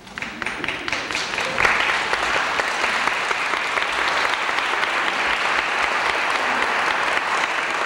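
An audience applauds in a large echoing hall, the clapping swelling quickly to a steady roar.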